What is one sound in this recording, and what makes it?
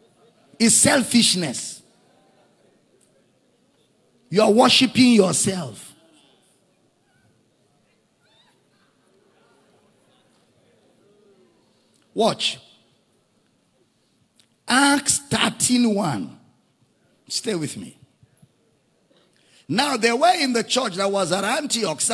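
A man preaches with animation into a microphone, in bursts with pauses, in a large echoing hall.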